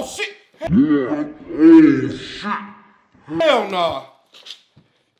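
A man speaks loudly and with animation close to a microphone.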